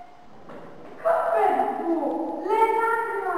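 A boy speaks loudly.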